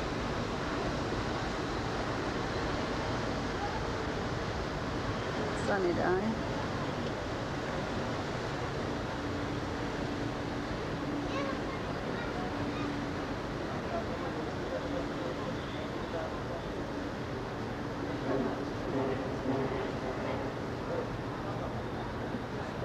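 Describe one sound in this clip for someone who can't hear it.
A ship's engine rumbles steadily.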